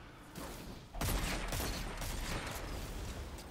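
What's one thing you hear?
Gunfire bursts out in short volleys.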